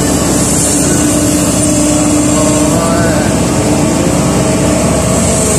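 An excavator engine rumbles and whines steadily up close.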